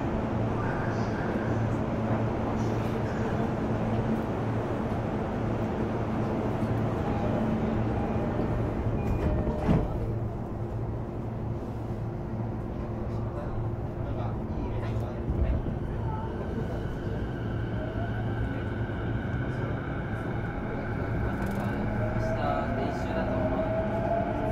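An electric train rumbles steadily along the tracks.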